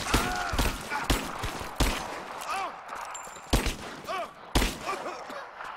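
Gunshots crack sharply, several times in quick succession.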